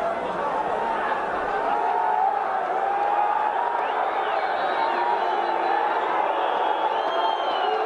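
Young men shout and argue nearby, outdoors.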